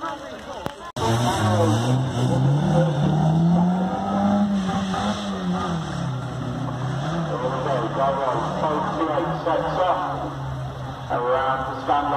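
A race car engine revs and roars, rising and falling in pitch.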